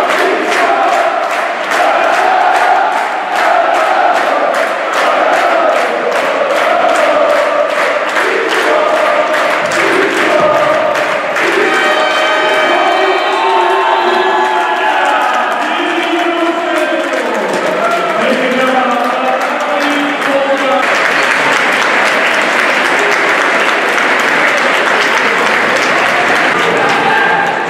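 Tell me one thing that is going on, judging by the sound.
A large crowd chants and sings loudly in an echoing hall.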